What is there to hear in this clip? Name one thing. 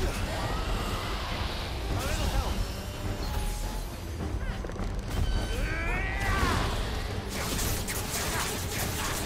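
Icy blasts crackle and whoosh.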